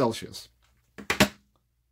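A small plastic device is set down on a table with a knock.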